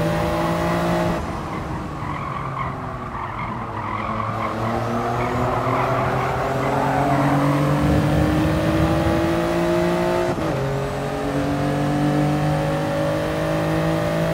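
A racing car engine revs up and down as it shifts gears.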